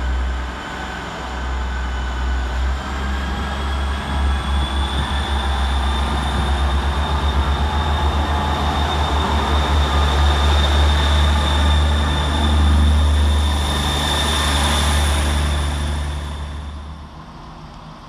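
A diesel train rumbles loudly as it pulls in and passes close by.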